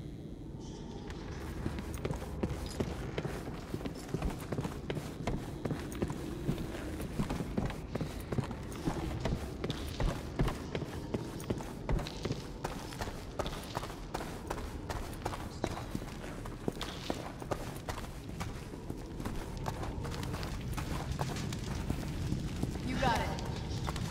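Footsteps thud on wooden planks and stone.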